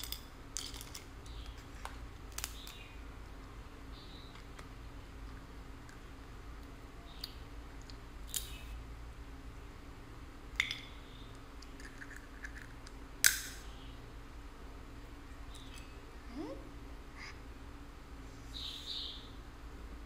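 Crab shells crack and snap close by.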